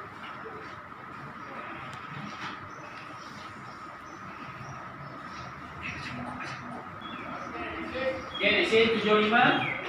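Young children chatter quietly nearby.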